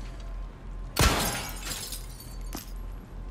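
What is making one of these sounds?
A short chime rings as an item is picked up.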